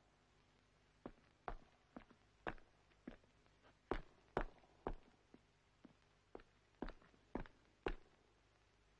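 Footsteps tap slowly on hard ground.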